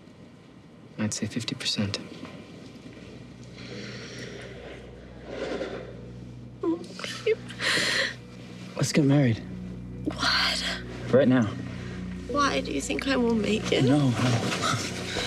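A man speaks softly and with emotion, close by.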